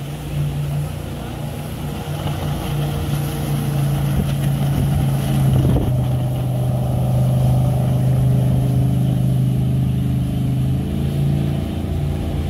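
A river rushes over rapids.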